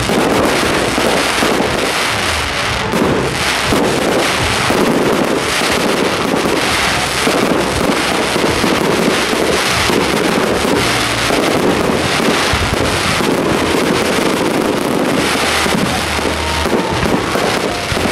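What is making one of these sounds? Fireworks burst and crackle loudly, one after another.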